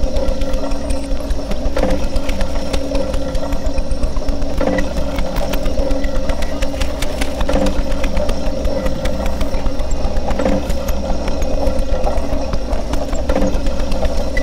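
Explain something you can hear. Small clicks and crackles patter irregularly over a droning sound.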